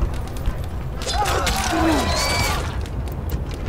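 A short bright musical flourish plays as a message pops up.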